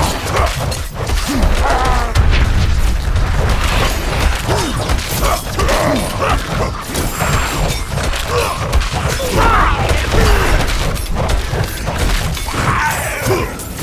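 Weapons clash and strike in rapid blows during a fight.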